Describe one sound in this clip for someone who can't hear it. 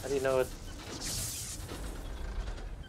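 A magical blast bursts with a loud rushing whoosh.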